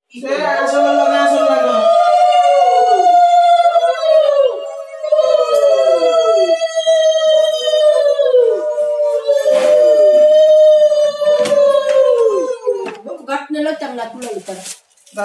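Several women ululate loudly and continuously close by.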